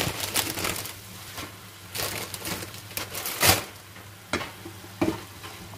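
A wooden spatula scrapes and knocks against a pan.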